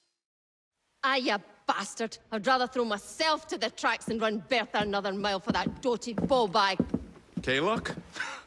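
A woman speaks angrily and loudly up close.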